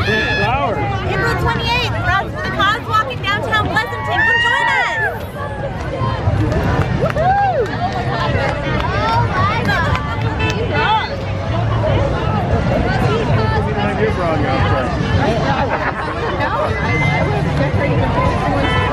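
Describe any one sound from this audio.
A crowd chatters and cheers outdoors.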